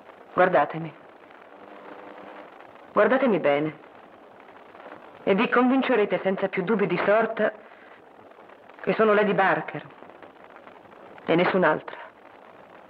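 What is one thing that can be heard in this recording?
A woman speaks calmly and softly, in short phrases with pauses.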